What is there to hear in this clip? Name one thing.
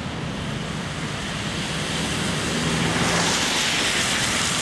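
A tram rolls closer along the tracks, growing louder.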